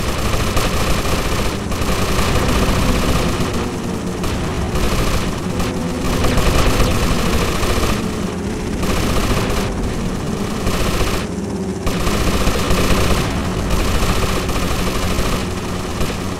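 A helicopter's rotor thumps and whirs.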